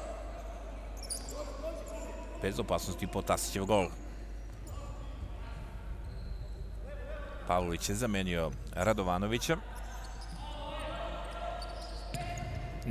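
Players kick a ball back and forth in a large echoing hall.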